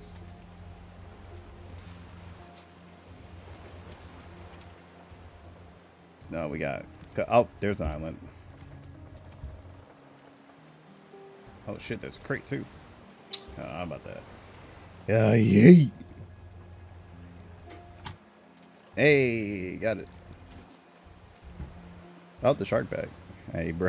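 Gentle waves lap softly at sea.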